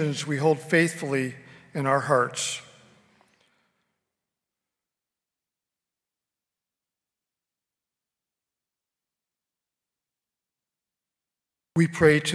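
A man reads aloud through a microphone, echoing in a large hall.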